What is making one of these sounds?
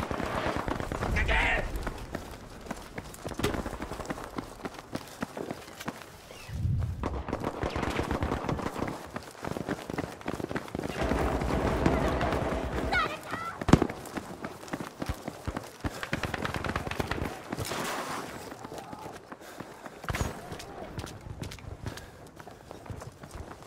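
Footsteps run quickly over stone pavement.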